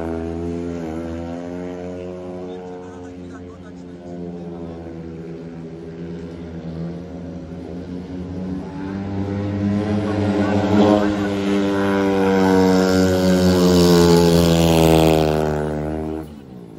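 A motorcycle engine roars, growing louder as it comes closer.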